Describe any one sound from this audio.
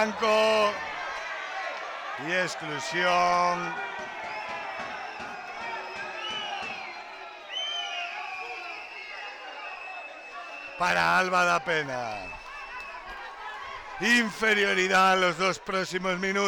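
A crowd of spectators chants and cheers loudly.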